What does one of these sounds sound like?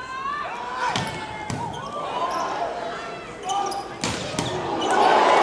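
A volleyball is struck hard with sharp smacks.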